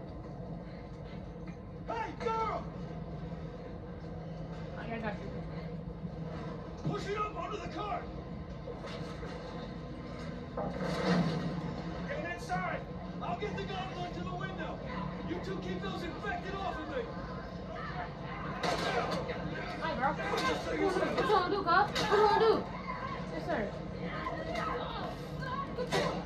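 Sounds from a video game play through a television loudspeaker.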